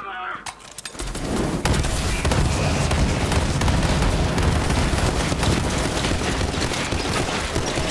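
A gun fires in rapid loud bursts.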